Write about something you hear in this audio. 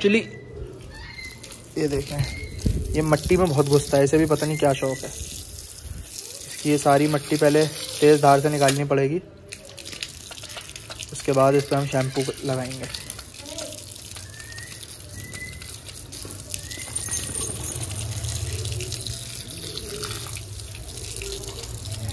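Water sprays from a garden hose and splatters on wet ground.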